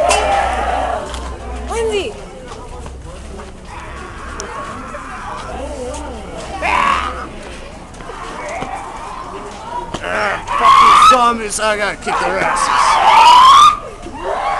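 A crowd of people talks and calls out outdoors.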